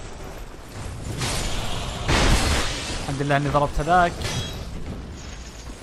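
A sword swings and strikes an enemy with a metallic clash.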